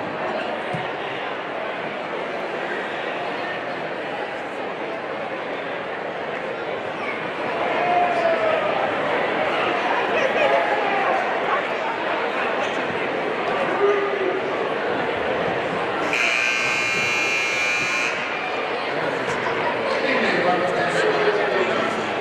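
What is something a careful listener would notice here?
A large crowd chatters in an echoing gym.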